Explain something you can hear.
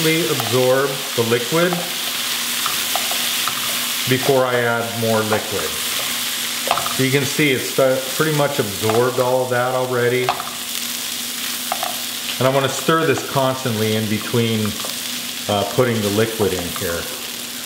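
A wooden spatula scrapes and stirs rice in a pan.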